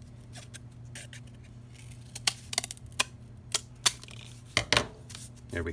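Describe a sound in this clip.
Scissors snip through cardboard.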